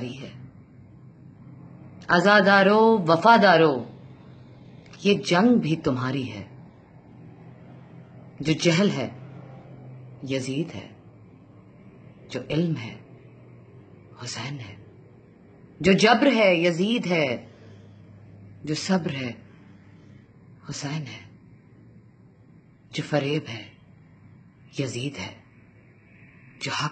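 A woman speaks close to the microphone in short, plaintive phrases with pauses between them.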